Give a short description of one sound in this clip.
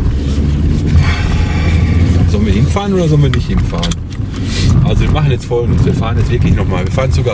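A man talks with animation close by inside a car.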